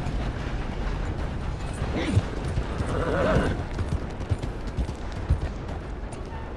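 Horse hooves clop on a hard street.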